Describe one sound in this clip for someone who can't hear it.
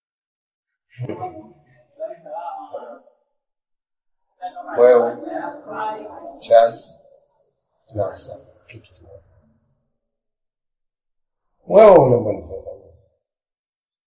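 An elderly man speaks weakly and slowly from close by.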